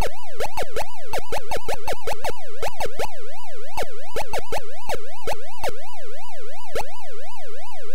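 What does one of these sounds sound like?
Short electronic blips chirp rapidly and irregularly.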